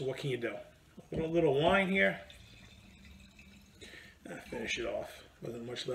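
Wine pours from a bottle into a glass.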